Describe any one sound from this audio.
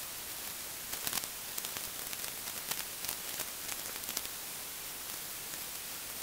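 Nylon tent fabric rustles.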